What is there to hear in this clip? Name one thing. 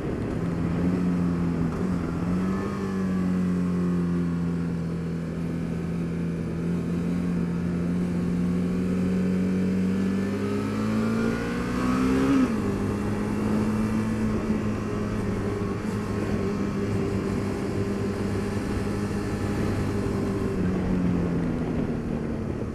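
Wind rushes past the rider's helmet.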